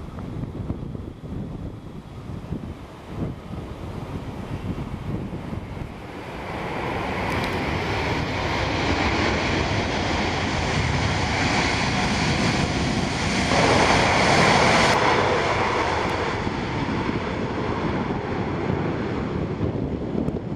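A jet airliner's engines roar loudly close by, swelling to a powerful whine.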